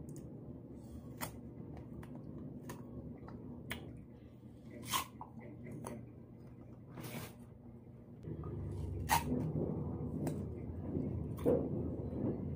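A young woman chews and bites into crunchy fruit close by.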